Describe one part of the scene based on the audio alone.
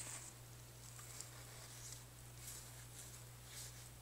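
A paper towel rustles.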